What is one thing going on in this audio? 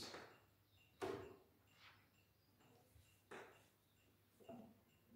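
A guitar knocks and thumps as it is picked up and handled.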